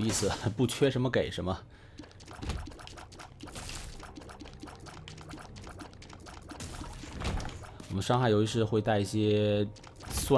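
Quick popping and splatting game sound effects ring out as shots hit monsters.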